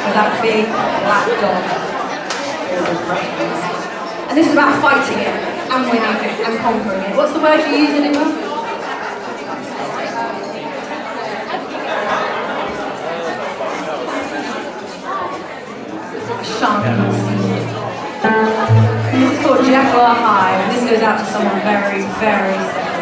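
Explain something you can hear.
An upright bass plucks a walking line.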